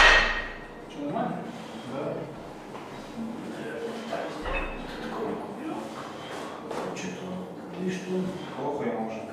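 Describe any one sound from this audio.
Weight plates clank as a man pulls them off a barbell.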